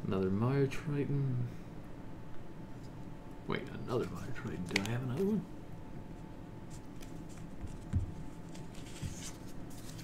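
Playing cards slide and tap on a tabletop.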